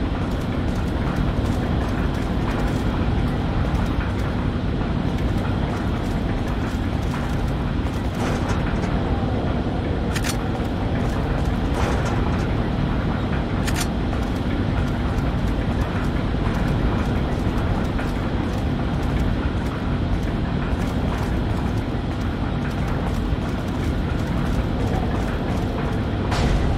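Footsteps scuff across a hard floor.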